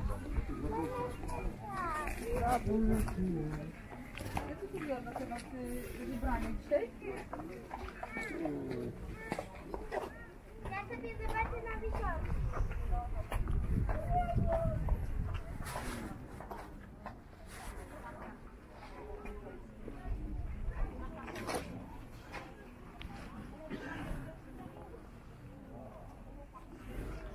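Men and women chat in a lively crowd outdoors.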